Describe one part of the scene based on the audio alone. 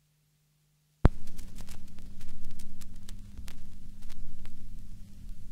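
Crackles and pops from a vinyl record play steadily with a low hum.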